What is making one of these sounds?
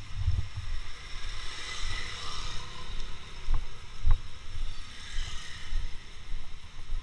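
A motorcycle engine passes close by.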